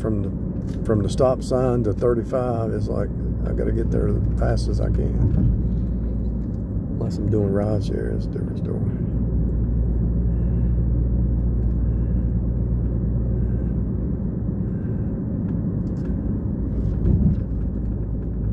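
A car engine hums steadily with road noise from inside the car.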